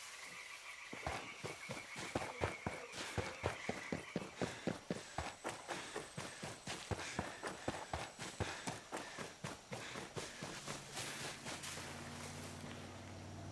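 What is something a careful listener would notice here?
Footsteps tramp quickly over soft ground.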